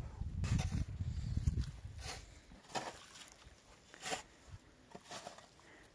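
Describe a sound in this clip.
Shovels scrape through wet cement and gravel.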